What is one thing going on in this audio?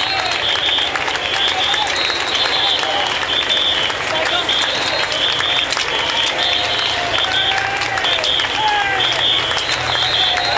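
A crowd cheers and shouts loudly nearby.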